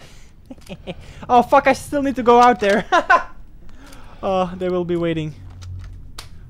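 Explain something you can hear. A young man laughs loudly into a close microphone.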